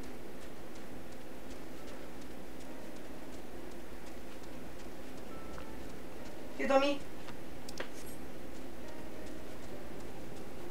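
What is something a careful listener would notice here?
Footsteps tap softly and steadily on the ground.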